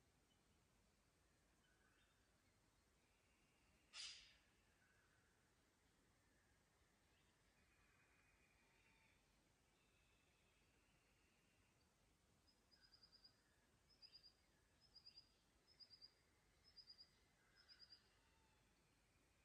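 A shallow creek trickles softly over stones.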